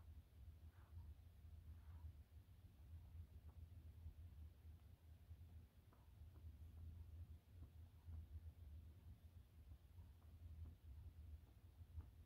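A hand softly rubs a small dog's fur.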